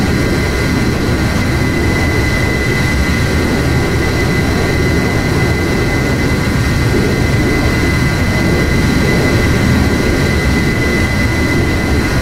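A jet engine roars steadily inside a cockpit.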